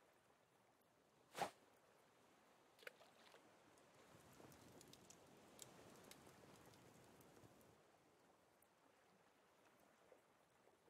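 Water laps and splashes gently.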